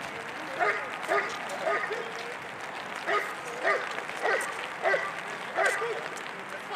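A dog barks loudly several times, close by.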